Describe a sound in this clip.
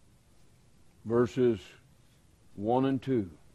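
A man speaks slowly and emphatically into a microphone, with pauses.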